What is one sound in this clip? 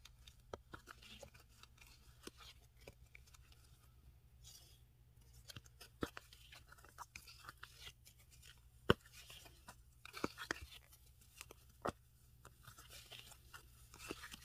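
A crochet hook clicks and rustles as yarn is pulled through the holes of a plastic bag base.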